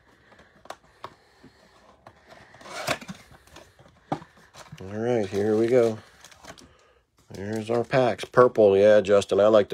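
Cardboard scrapes and rustles as a box is opened.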